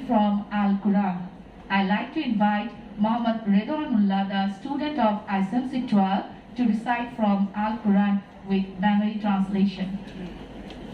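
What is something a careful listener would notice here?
A woman recites in a melodic voice through a loudspeaker in an echoing hall.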